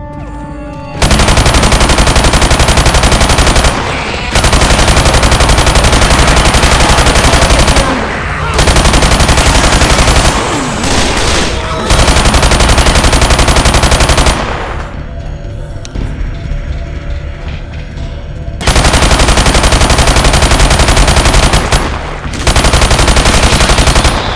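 Rapid automatic gunfire rattles in long, loud bursts.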